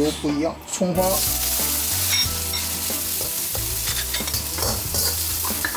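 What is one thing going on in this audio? Food sizzles loudly in hot oil in a wok.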